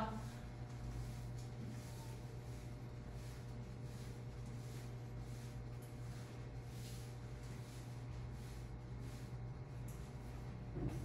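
A board eraser rubs across a chalkboard in quick, repeated strokes.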